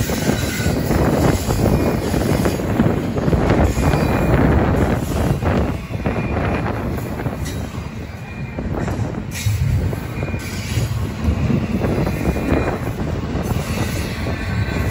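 A double-stack freight train rumbles past close by.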